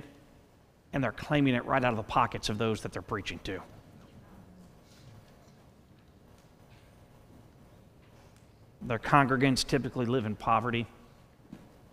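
A man speaks calmly through a microphone, pausing between phrases, in a large room with slight echo.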